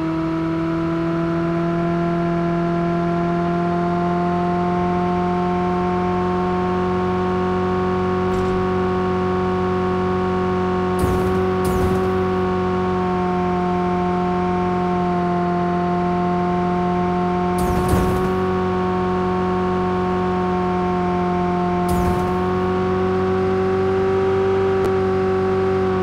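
A car engine hums steadily at high speed throughout.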